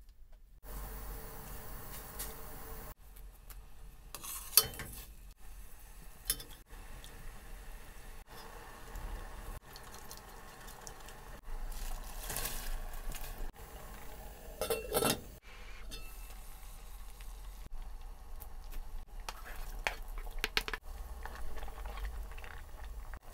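Water simmers and bubbles in a pot.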